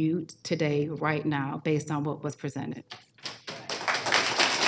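A woman speaks firmly into a microphone.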